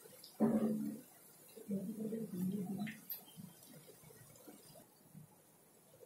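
Batter sizzles and bubbles in hot oil.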